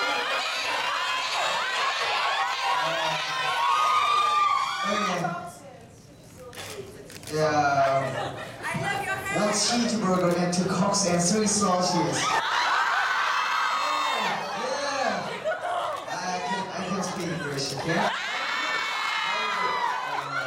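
A crowd of young women screams and cheers.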